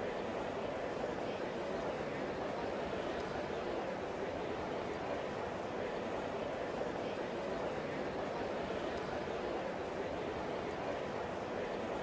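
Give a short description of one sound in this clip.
A large crowd murmurs steadily in the background.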